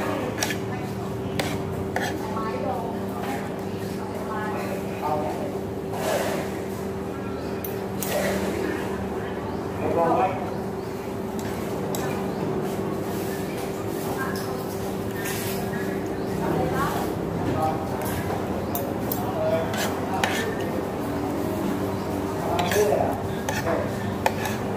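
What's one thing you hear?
Metal cutlery clinks and scrapes against a plate.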